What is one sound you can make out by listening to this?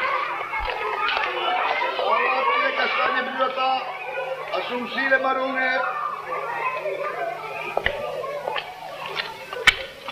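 A crowd of children chatters and shouts nearby outdoors.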